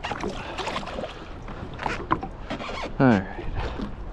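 Water splashes as a fish is released.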